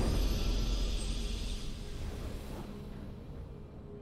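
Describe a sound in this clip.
A triumphant game fanfare rings out and slowly fades.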